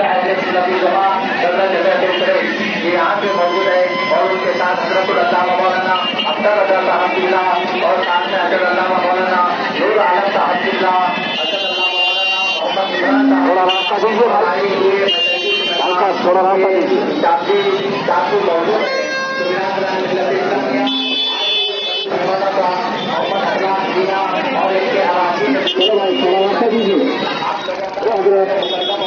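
A man chants loudly through a loudspeaker.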